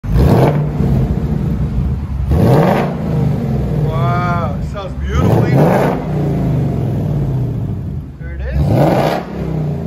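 A car engine idles with a deep exhaust rumble.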